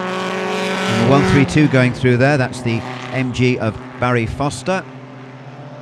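A racing car engine revs hard up and down with quick gear changes.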